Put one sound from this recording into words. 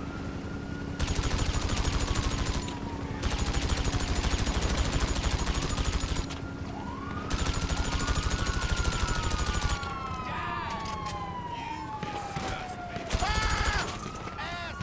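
An automatic gun fires in rapid, loud bursts.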